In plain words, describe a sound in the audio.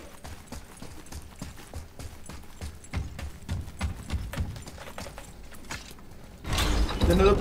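Heavy footsteps run over stone and wooden boards.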